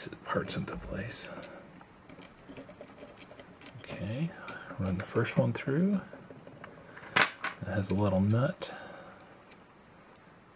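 Small plastic connectors click and snap into place.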